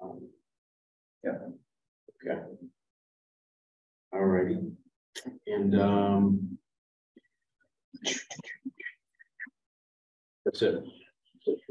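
A man speaks calmly through a microphone, with pauses.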